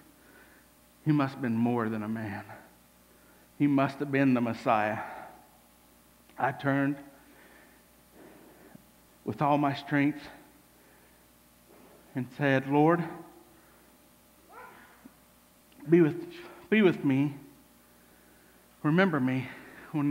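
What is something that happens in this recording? A man speaks in dramatic bursts with long pauses, in a room with a light echo.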